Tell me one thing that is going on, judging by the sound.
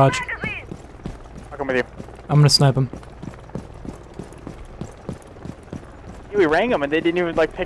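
Footsteps tap steadily on hard pavement.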